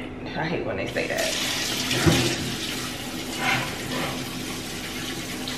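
Water runs from a tap.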